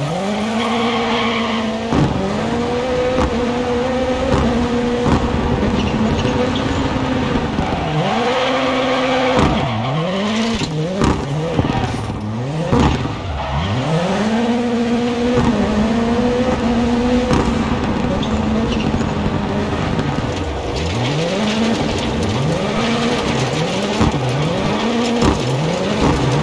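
A rally car engine revs hard and rises and falls through gear changes.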